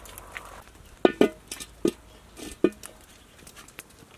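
Firewood crackles and pops in a fire.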